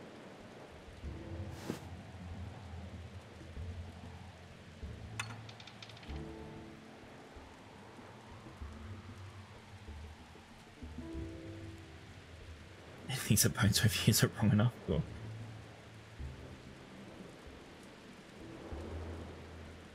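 A young woman talks calmly into a microphone.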